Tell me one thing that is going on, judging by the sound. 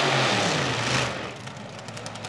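A drag racing car's engine roars loudly in a burnout, then cuts off.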